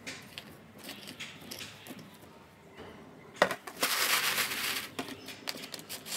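Dried peel pieces rattle as they are shaken from a jar onto a woven tray.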